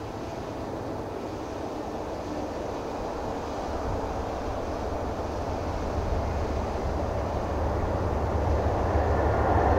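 A train rumbles closer, growing steadily louder.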